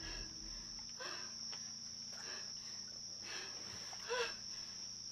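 A young woman gasps and whimpers softly.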